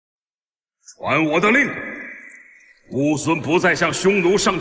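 A man speaks firmly, close up.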